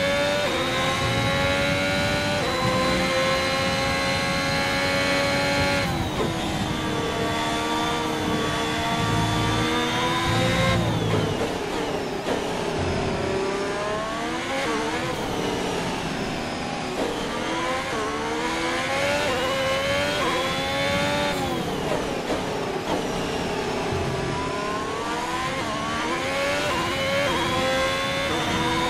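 A racing car engine screams at high revs, its pitch rising through the gears and dropping sharply under braking.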